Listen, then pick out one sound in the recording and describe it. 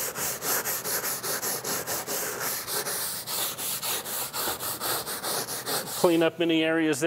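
A stiff brush scrubs back and forth on a wooden floor in quick, rhythmic strokes.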